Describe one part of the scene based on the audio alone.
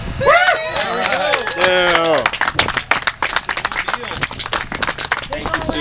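A group of people clap their hands.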